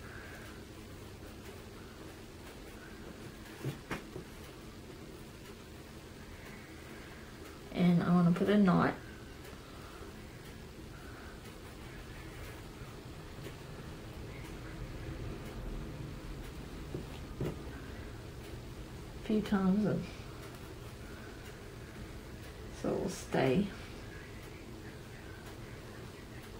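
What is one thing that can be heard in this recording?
Stiff netting fabric rustles softly as hands handle it.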